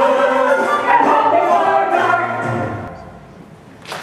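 A group of men and women sing together on a stage, ending on a held note.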